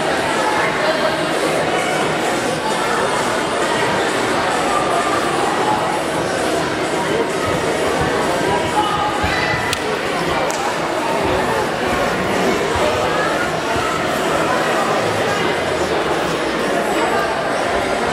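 A crowd of spectators murmurs and chatters in a large echoing hall.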